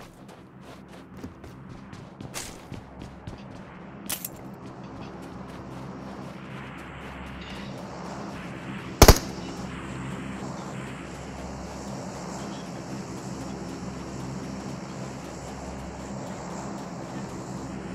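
Footsteps run quickly over hard ground and sand.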